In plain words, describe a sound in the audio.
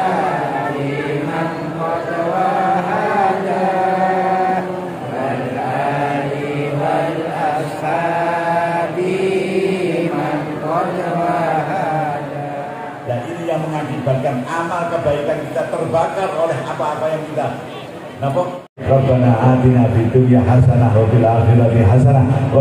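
An adult man speaks into a handheld microphone, heard through loudspeakers.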